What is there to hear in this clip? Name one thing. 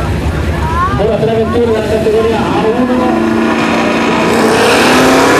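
Powerful car engines idle and rev loudly.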